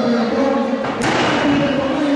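A body slams onto the wrestling mat with a heavy thud.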